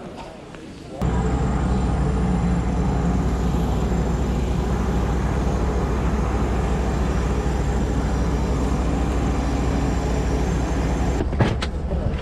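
An aircraft engine hums and whines loudly and steadily nearby.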